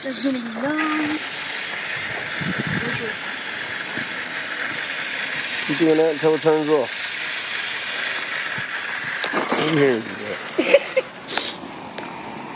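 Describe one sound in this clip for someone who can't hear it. An electric toy car motor whines steadily as the car drives away.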